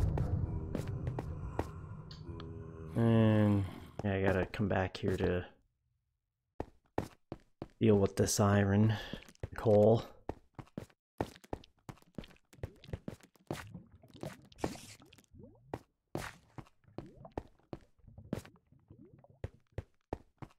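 Footsteps tap on stone.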